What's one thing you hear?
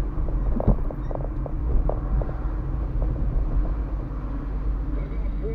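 A car engine hums steadily from inside the car while it drives.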